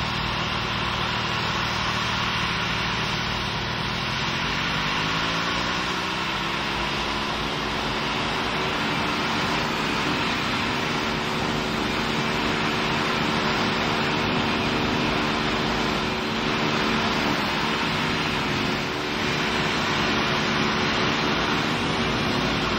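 A jet engine hums and roars steadily, its whine rising in pitch early on.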